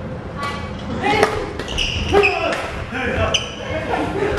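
Sports shoes squeak on a wooden court.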